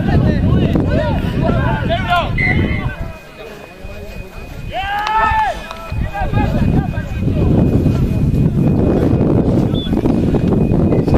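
A small crowd of spectators cheers and shouts.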